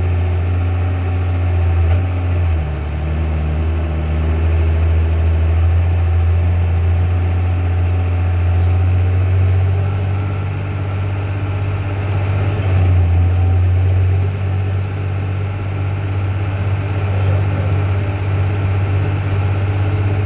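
Tyres crunch over dry corn stalks.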